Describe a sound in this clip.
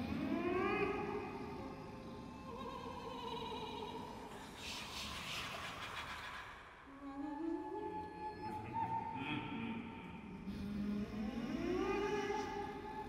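A choir sings slow, sustained chords in a large echoing hall.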